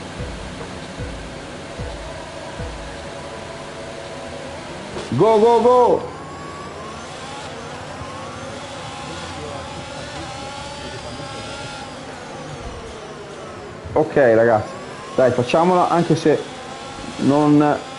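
A racing car engine revs and whines as it speeds up through the gears.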